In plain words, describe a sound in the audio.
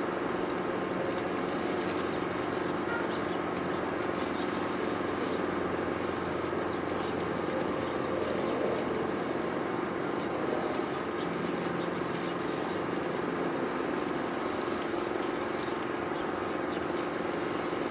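A distant city hums steadily.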